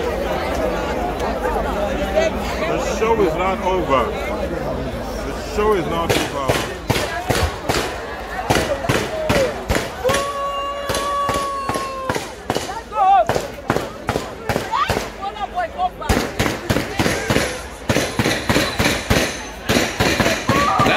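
A large crowd cheers and sings loudly outdoors.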